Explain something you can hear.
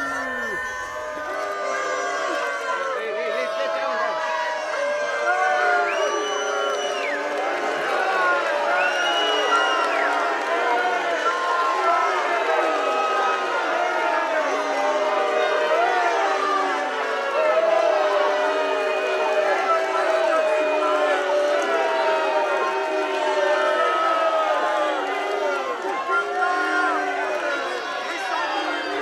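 A large crowd of men and women shouts and jeers loudly outdoors.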